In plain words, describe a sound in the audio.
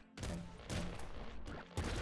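Small explosions burst in a game.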